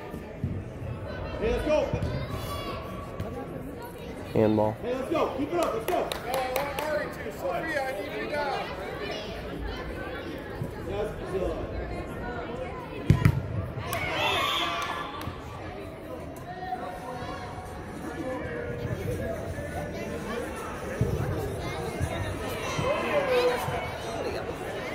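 Players and spectators shout and call out across a large echoing indoor hall.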